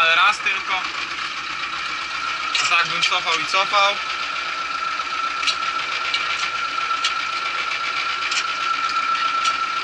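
A tractor cab rattles and clatters over rough ground.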